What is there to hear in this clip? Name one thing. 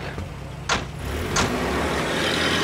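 An engine revs up as a vehicle pulls away through mud.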